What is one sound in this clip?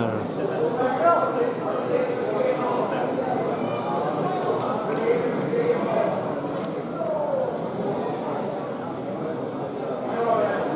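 A crowd of men and women talks and calls out in a large echoing hall.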